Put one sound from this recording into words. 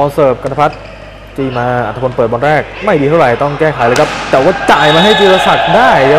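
A volleyball is struck by hand during a rally.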